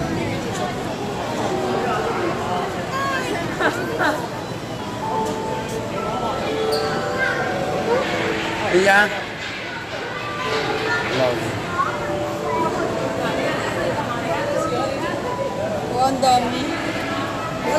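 Water splashes as a sea lion swims.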